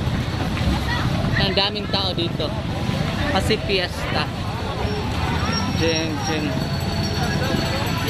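A crowd of adults talks and calls out outdoors.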